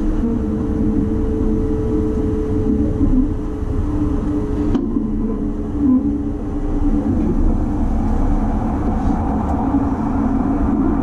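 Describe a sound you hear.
A train rumbles steadily along the tracks, heard from inside.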